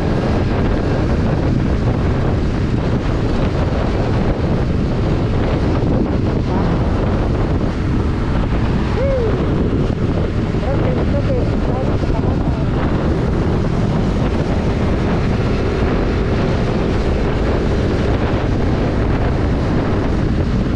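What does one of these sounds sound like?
A motorcycle engine hums steadily as it rides along.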